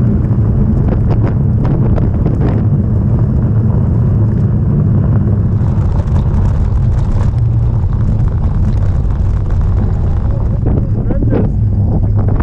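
Tyres crunch on a gravel path.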